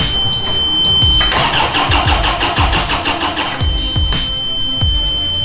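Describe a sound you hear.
A forklift engine idles with a low, steady rumble.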